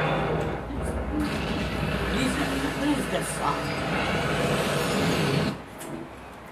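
A spaceship engine roars loudly through a television speaker, then cuts off.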